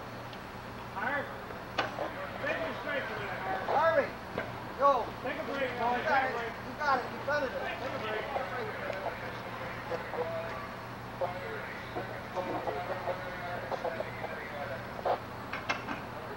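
Men shout to each other at a distance outdoors.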